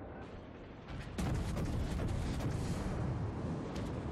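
Large naval guns fire with heavy booming blasts.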